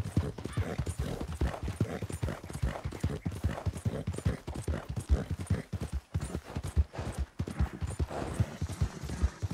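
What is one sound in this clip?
A horse's hooves thud rapidly at a gallop on dirt.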